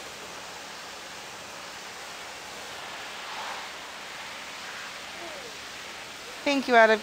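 A pressure washer sprays water with a steady hiss.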